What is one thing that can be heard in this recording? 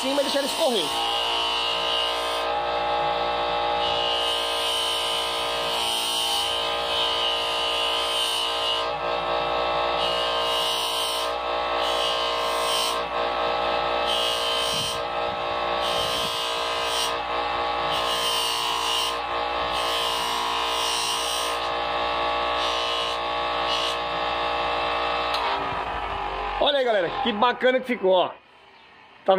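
A polishing wheel motor hums steadily, then winds down.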